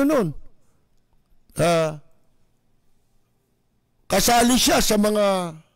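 A middle-aged man speaks with animation into a close microphone, in short bursts.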